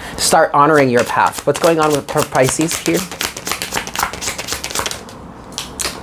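Playing cards riffle and shuffle close by.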